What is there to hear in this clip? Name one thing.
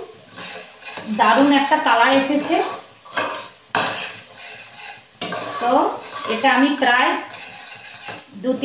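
A hand stirs food in a metal pan.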